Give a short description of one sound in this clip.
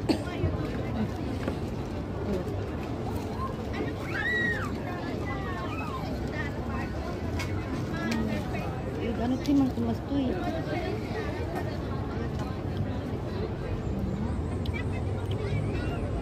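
Young women talk close by with animation.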